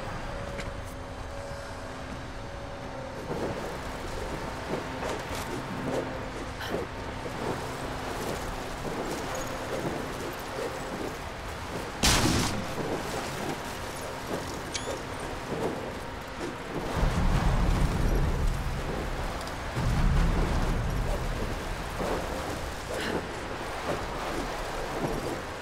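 Strong wind howls and roars steadily outdoors.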